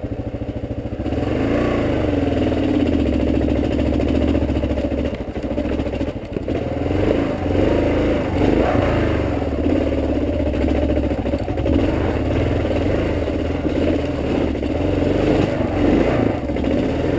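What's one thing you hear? A motorcycle engine revs up and down while riding over rough ground.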